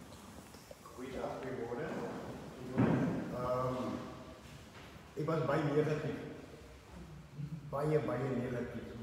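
A man speaks loudly and with feeling, close by.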